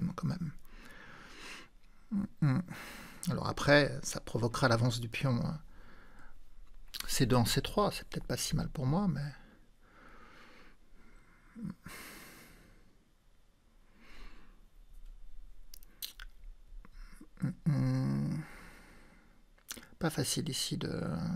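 A man speaks thoughtfully into a close microphone, with pauses.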